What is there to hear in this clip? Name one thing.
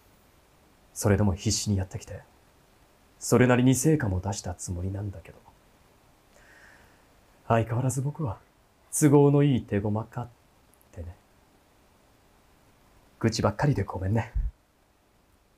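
A man reads out calmly close to a microphone.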